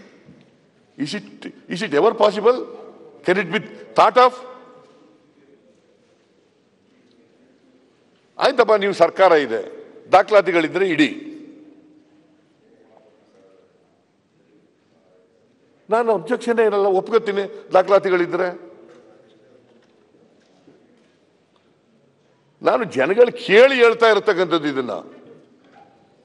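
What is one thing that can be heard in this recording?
An elderly man speaks firmly into a microphone in short bursts with pauses between them.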